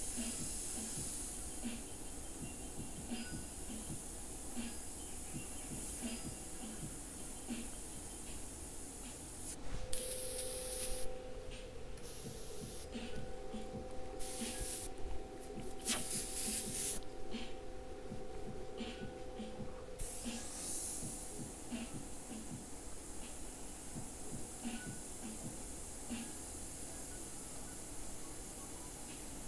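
An airbrush hisses steadily as it sprays paint.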